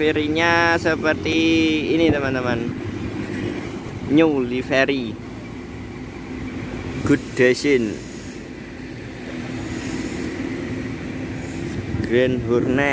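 A bus engine idles with a low rumble.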